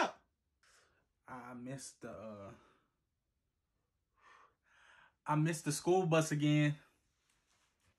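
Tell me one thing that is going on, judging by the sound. A young man speaks up close with animation, raising his voice at times.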